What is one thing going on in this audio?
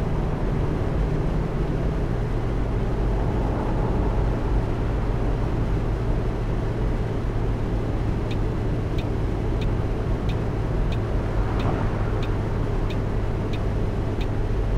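A bus engine hums steadily at cruising speed.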